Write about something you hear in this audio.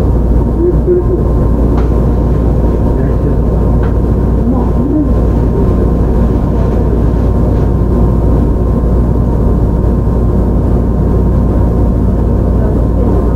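A train rumbles steadily along the rails close by.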